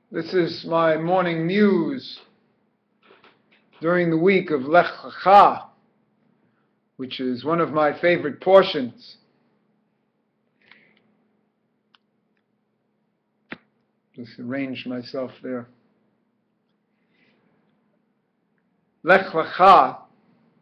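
A middle-aged man speaks calmly and close to a microphone, in short bursts with pauses.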